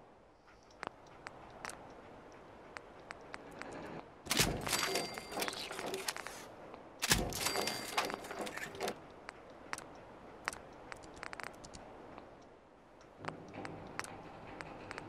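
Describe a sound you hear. Short menu clicks tick repeatedly.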